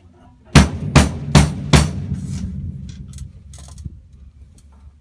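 Drumsticks strike drums and cymbals in a quick pattern, ringing out in a small room.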